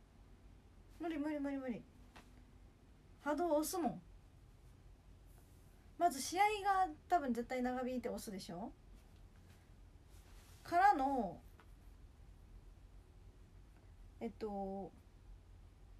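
A young woman speaks close to the microphone in short, lively bursts.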